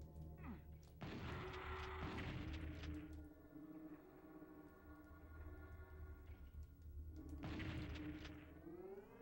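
A game shotgun fires with a loud blast.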